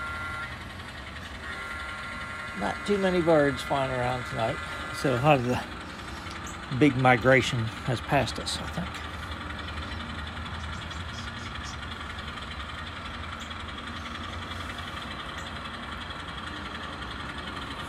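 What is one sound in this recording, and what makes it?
A model train rumbles softly along its track.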